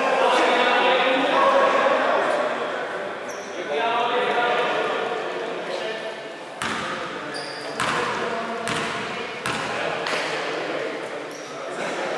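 Men call out to each other in an echoing hall.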